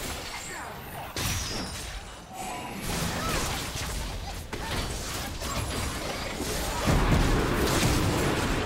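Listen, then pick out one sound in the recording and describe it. Magic spells whoosh and crackle during a fast battle.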